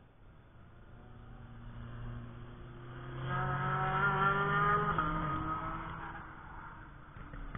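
A car engine roars closer, passes by at speed and drops in pitch as it fades away.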